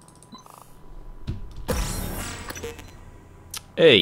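A game menu plays a soft whooshing sound effect as a choice is confirmed.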